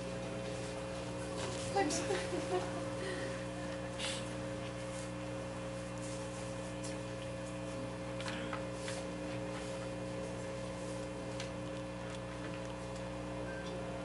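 A steady low electronic drone hums.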